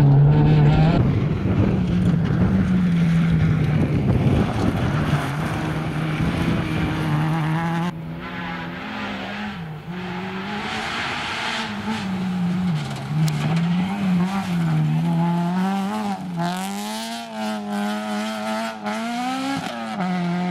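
A rally car engine revs hard as the car passes by outdoors.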